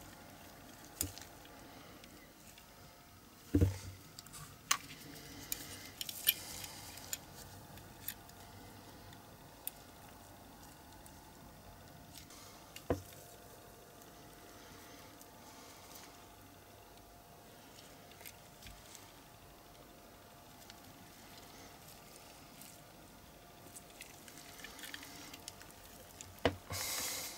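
Small metal and plastic parts click and tap as a toy is taken apart by hand.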